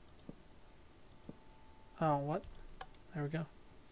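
A lever clicks.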